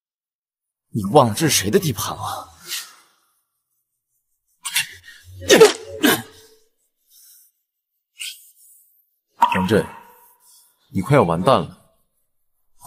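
A second young man speaks with menace up close.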